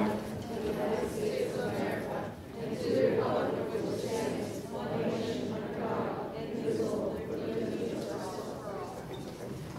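A large crowd of people sings together in a large echoing hall.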